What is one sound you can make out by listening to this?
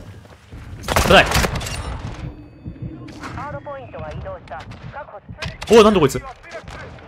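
A shotgun fires loud, booming blasts.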